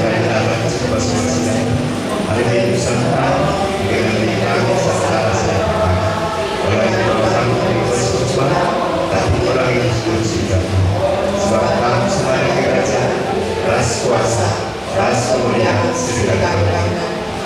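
A middle-aged woman speaks steadily into a microphone, heard through a loudspeaker.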